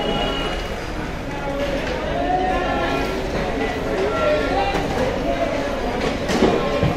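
Many voices of men and women chatter in a busy crowd nearby.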